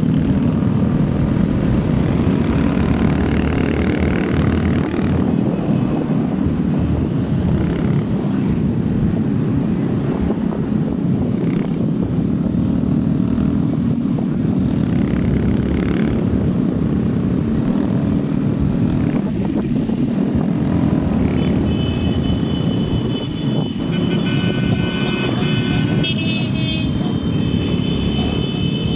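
A motorcycle engine hums steadily close by while riding.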